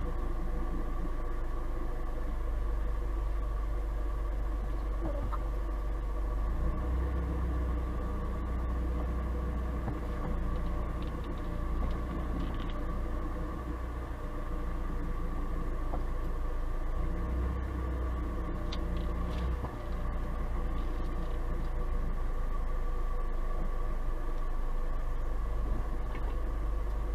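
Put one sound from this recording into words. A car engine runs with a steady low hum.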